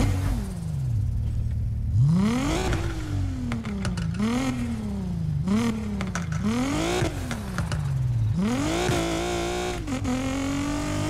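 A car engine revs up and down repeatedly as it shifts through gears.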